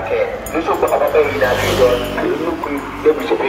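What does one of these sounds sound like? A motorbike passes close by.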